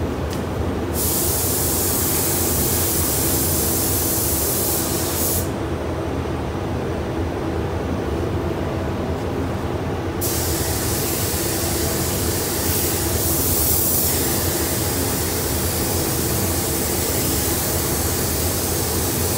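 A spray gun hisses loudly in bursts.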